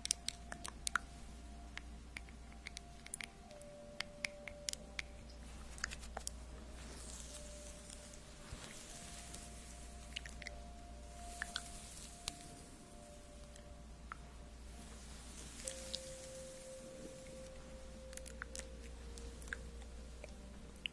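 Fingers tap and click sharply near a microphone.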